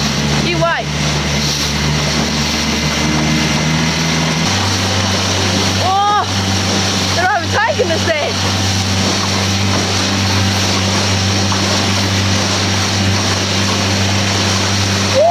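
A boat's outboard motor drones steadily, changing pitch once.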